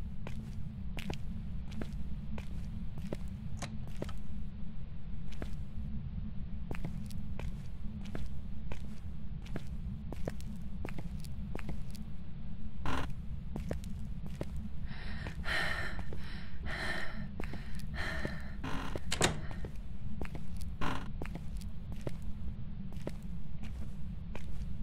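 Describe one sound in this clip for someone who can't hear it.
Footsteps tap steadily on a hard tiled floor.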